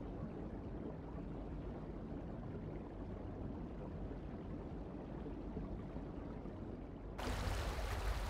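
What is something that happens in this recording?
Water churns in a muffled underwater rumble.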